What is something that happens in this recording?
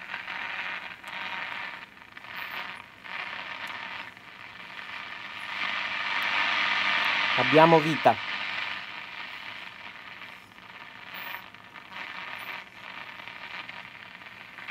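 Radio static hisses and swells from a loudspeaker as the tuning dial is turned.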